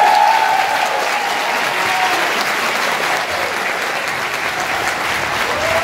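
An audience applauds loudly in a large hall.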